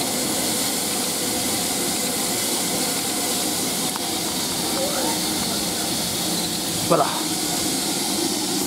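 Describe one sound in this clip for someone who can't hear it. A steam locomotive hisses steadily while standing still.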